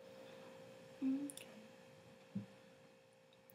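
A young woman makes a short, quiet sound with her voice close to the microphone.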